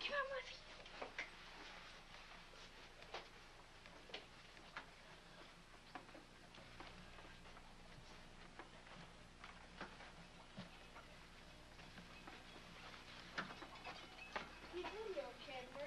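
Footsteps thud and knock on a hard floor.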